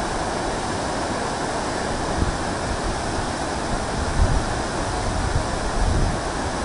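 Water rushes and roars steadily through open dam gates.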